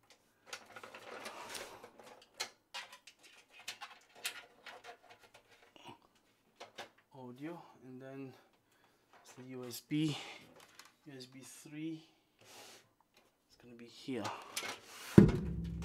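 Cables rustle and tap against a metal case.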